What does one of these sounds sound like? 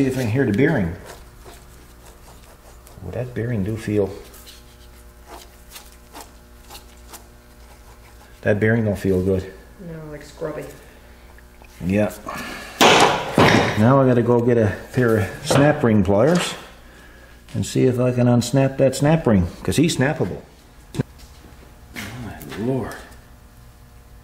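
A man talks calmly and explains, close to a microphone.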